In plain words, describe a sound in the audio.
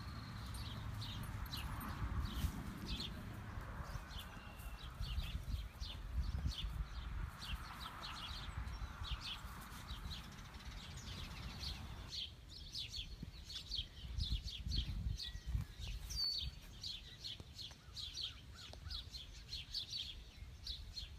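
Hooves shuffle softly on straw.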